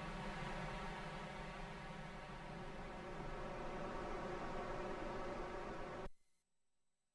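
A soft electronic drone hums steadily, then cuts out.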